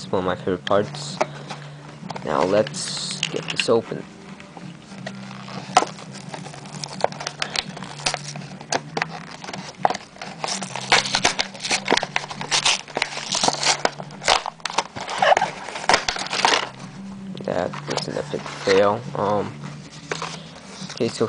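Plastic packaging crinkles and rustles in someone's hands.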